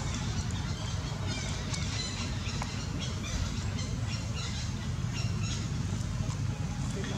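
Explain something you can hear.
A baby monkey nibbles on a dry leaf that crackles softly.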